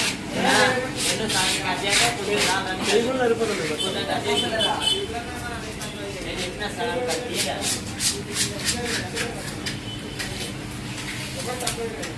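A knife slices through fish on a wooden block.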